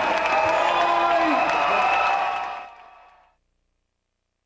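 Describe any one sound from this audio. An accordion plays loud, sustained chords and then fades away.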